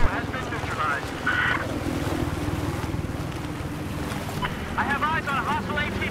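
Water splashes with swimming strokes.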